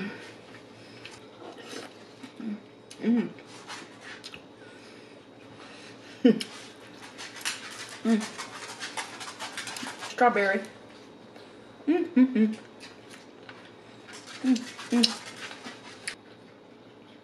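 A young woman chews crunchy food and smacks her lips close to a microphone.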